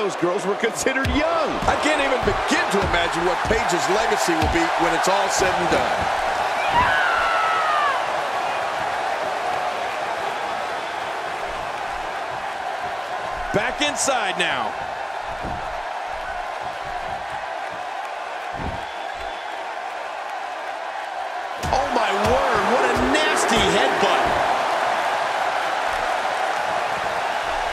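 A large crowd cheers and roars steadily in a big echoing arena.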